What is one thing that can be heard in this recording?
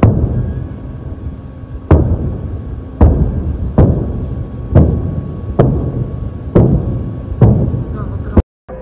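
Rockets fire one after another, each launch a loud boom followed by a rushing roar.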